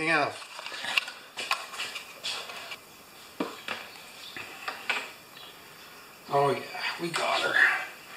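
Metal tools click and tap against a mower engine.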